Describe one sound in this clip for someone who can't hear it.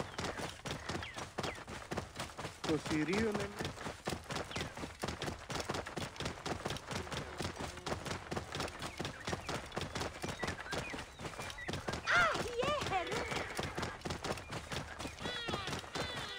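A horse gallops, hooves pounding on a dirt track.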